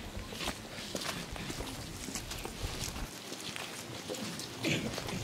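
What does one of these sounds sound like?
A seated crowd murmurs quietly outdoors.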